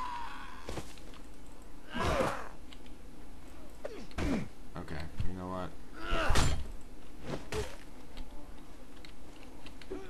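Wooden weapons strike with dull thuds.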